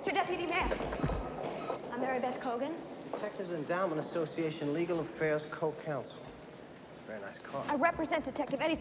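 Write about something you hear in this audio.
Footsteps echo on a stone floor in a large hall.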